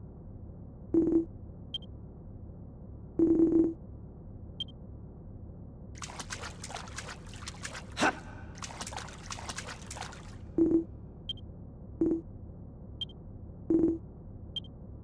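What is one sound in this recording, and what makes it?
Short electronic blips sound in a game.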